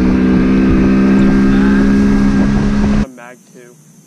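A boat's outboard motor runs at speed.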